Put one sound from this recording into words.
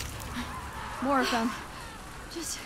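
A teenage boy speaks tensely and quietly.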